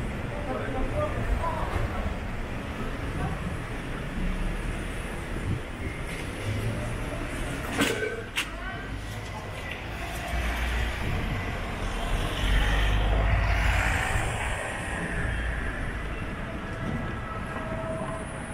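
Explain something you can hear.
Outdoor street noise hums steadily with a low rumble.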